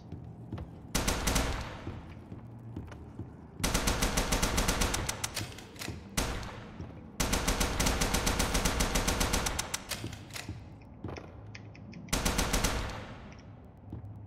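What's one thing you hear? A machine gun fires loud rapid bursts.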